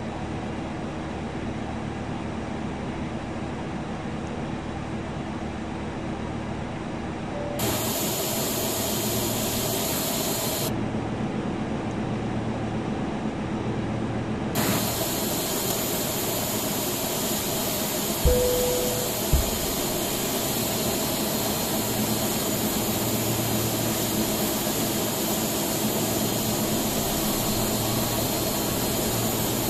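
A jet airliner's engines hum steadily.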